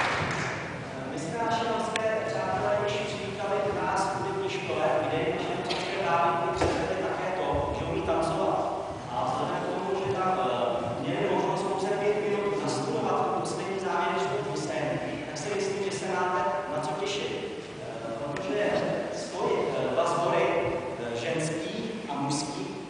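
A woman sings in a large echoing hall.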